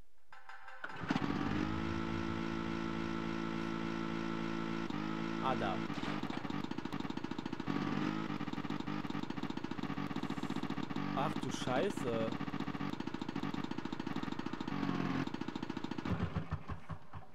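A snowmobile engine starts up and drones steadily, revving now and then.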